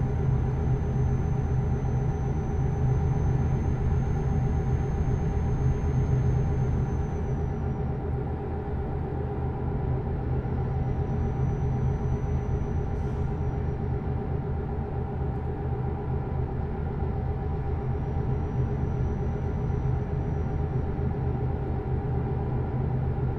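Tyres roll on a snowy road.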